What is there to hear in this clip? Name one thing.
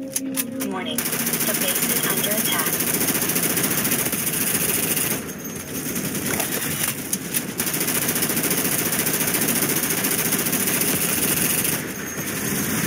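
A rifle fires rapid bursts of shots nearby.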